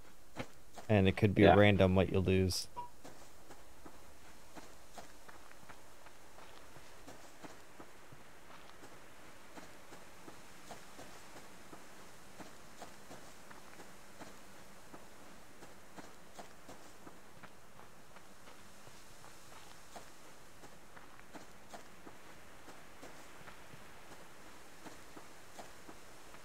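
Footsteps crunch softly through grass at a steady pace.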